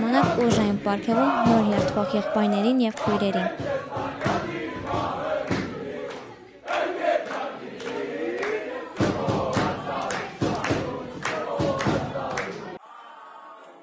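Young people chatter and laugh loudly close by.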